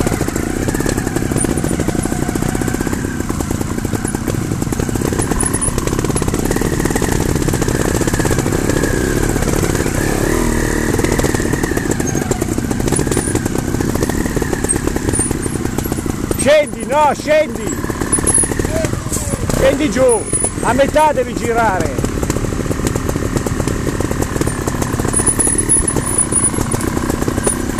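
A dirt bike engine drones and revs close by throughout.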